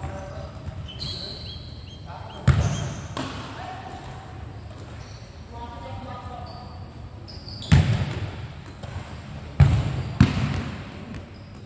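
Young boys shout to each other across the court.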